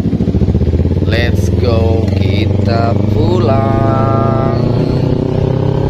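A motorcycle engine revs up sharply several times, rising and falling in pitch.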